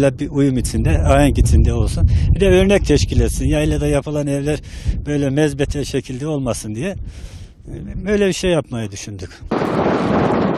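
A middle-aged man speaks calmly and close into a microphone.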